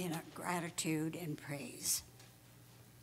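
An elderly woman speaks calmly into a microphone in an echoing hall.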